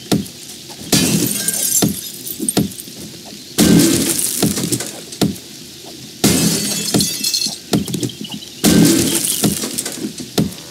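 A weapon strikes a wooden door in heavy, repeated thuds.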